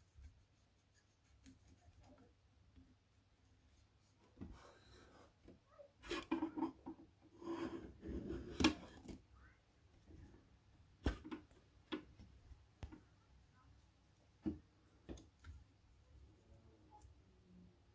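A cotton swab scrubs softly against a hard surface.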